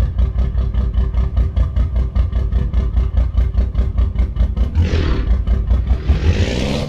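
A diesel truck engine idles with a deep, even chugging rumble.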